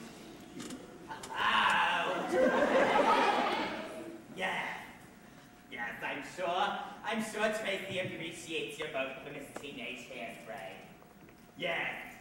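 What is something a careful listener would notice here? A woman sings on stage in a large hall, heard from a distance.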